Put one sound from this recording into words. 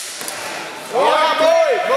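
A man shouts loudly nearby in an echoing hall.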